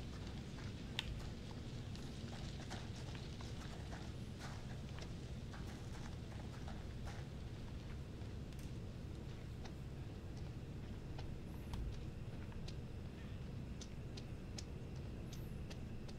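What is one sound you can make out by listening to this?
Footsteps rustle through brush and then tap softly on a road.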